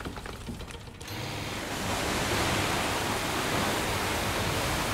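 Water churns and splashes against a moving boat.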